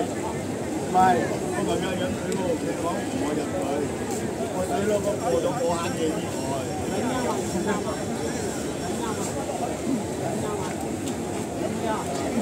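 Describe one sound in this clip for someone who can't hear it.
A crowd of people chatter and call out nearby.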